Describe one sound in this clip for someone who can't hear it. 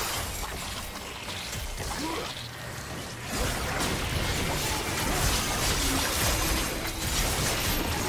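Spell effects whoosh and crackle as game characters fight.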